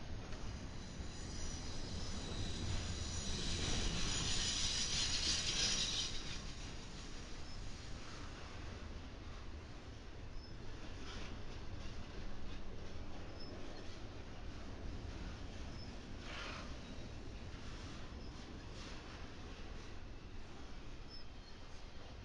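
A long freight train rumbles steadily past on the tracks close by.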